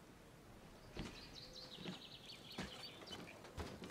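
Footsteps thud on a metal step.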